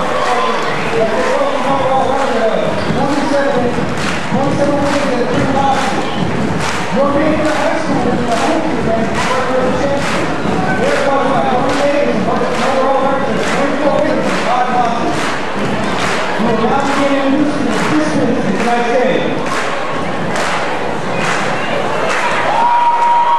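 A group of young women chant a cheer in unison in a large echoing gym.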